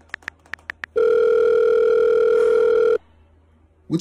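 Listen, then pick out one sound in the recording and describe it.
A phone rings with a steady electronic tone.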